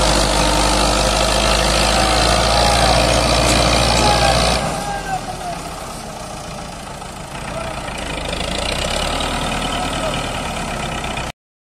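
A tractor engine roars loudly close by, then settles to a lower rumble.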